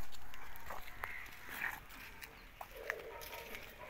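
Footsteps scuff on a hard path.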